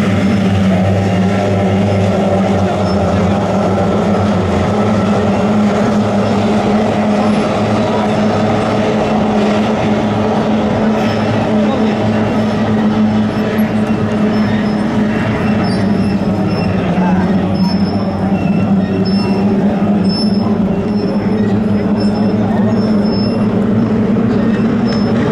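Racing boat engines drone loudly across the water, steady and high-pitched.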